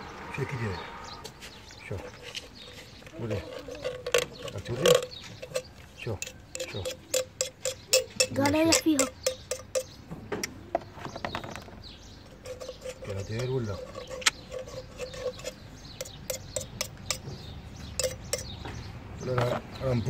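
Metal tools click and scrape against a metal pipe fitting.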